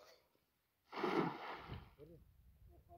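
A fishing net splashes onto the water.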